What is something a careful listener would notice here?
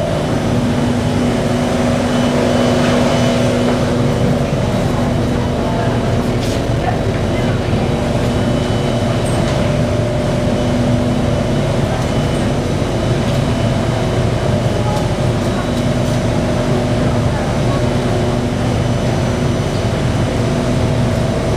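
A train hums steadily.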